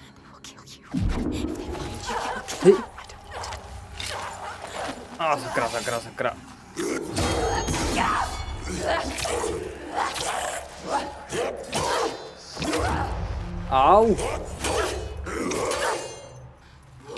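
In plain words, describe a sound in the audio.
A man speaks in a low, threatening voice.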